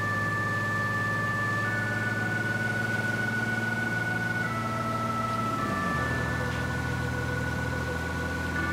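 A truck engine rumbles steadily, dropping in pitch as the gear shifts.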